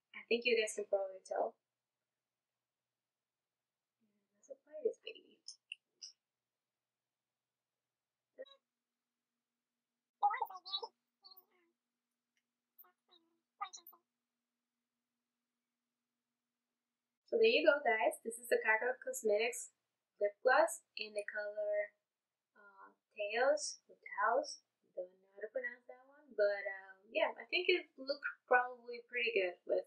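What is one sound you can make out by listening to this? A young woman talks calmly and close to a microphone, pausing often.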